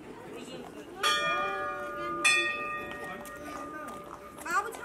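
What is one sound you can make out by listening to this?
A small temple bell rings out and rings on.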